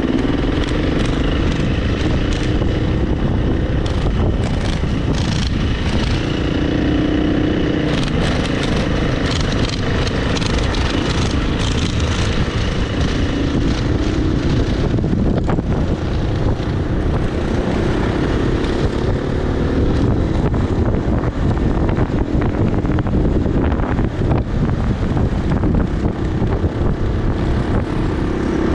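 Tyres crunch and rattle over loose gravel.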